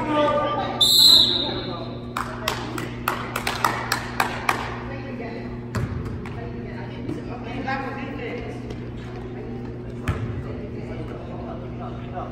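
Young players and spectators call out in the background.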